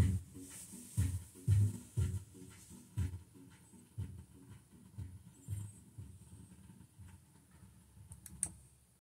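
A stylus crackles softly on the spinning vinyl.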